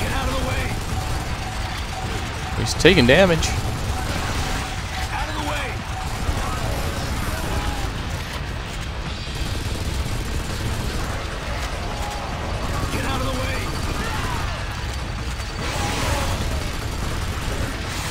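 Rapid machine gun fire rattles.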